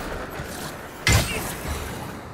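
A sword clangs against an enemy with a heavy hit.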